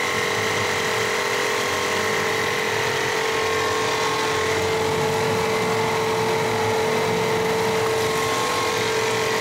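A machine hums and whirs loudly and steadily.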